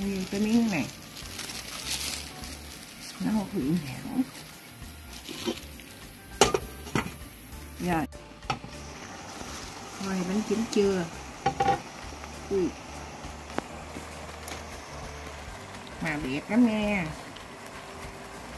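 Cloth rustles as it is folded over a steamer.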